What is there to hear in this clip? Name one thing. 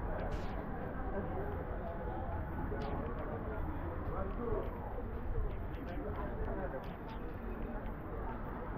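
A busy outdoor street murmurs with distant voices and traffic.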